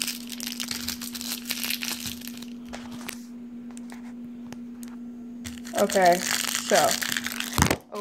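Plastic wrapping crinkles and rustles under fingers.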